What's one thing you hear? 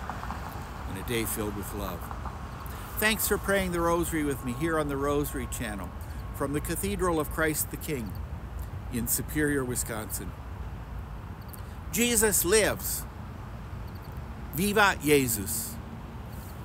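An elderly man speaks calmly and close by.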